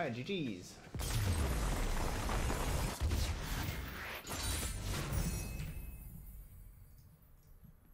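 A sweeping whoosh and swelling fanfare of a game's victory effect rises and fades.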